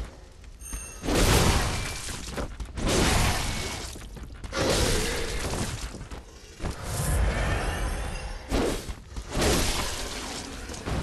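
A monster shrieks and groans.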